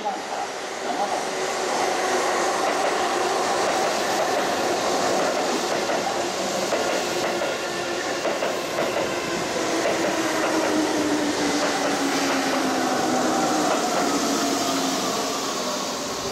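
A train's motor whines, falling in pitch as it slows.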